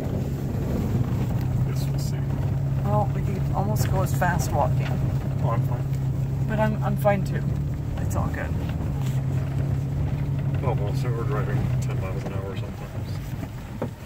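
A car engine drones steadily while driving on a rough road.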